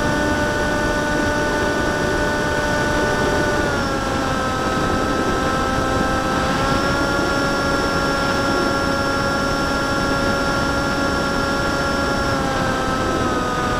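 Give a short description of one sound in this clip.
An electric model airplane's motor and propeller whine close by, the pitch dipping and rising with the throttle.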